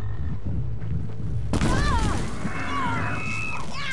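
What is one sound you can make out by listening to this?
A bowstring twangs as an arrow is shot.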